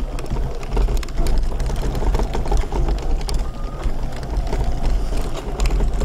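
Tyres crunch and rumble over a dirt path.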